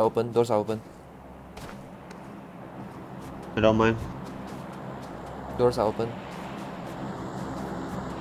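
Footsteps crunch over snow.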